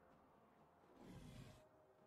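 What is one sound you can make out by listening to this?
A magical whoosh rings out from a game character.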